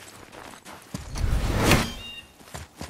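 A heavy body lands hard on packed snow with a thud.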